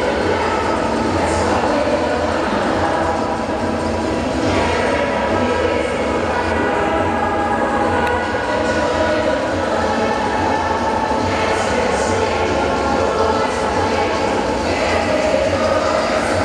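Ice skate blades scrape and swish across the ice.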